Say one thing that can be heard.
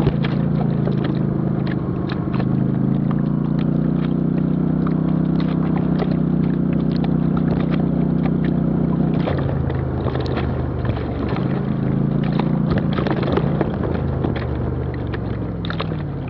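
An off-road vehicle engine hums while driving along a dirt trail.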